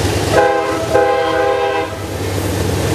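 A train horn blows two loud blasts.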